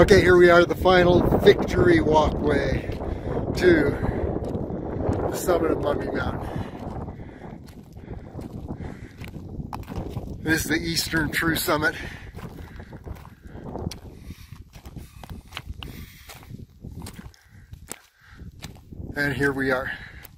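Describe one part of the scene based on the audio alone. Footsteps crunch on loose rocks and gravel.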